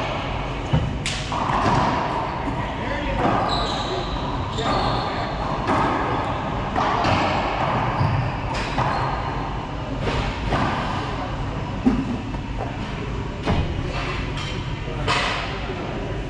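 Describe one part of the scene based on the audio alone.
A racquetball smacks off walls and racquets with sharp pops that echo.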